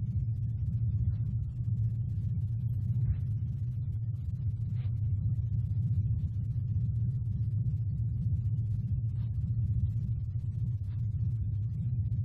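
Bare feet step slowly across a floor.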